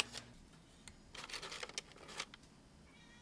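Tongs clack against bread.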